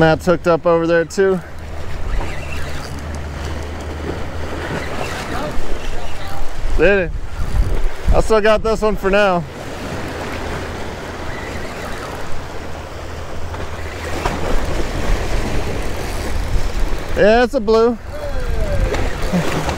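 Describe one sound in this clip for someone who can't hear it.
A spinning fishing reel is cranked.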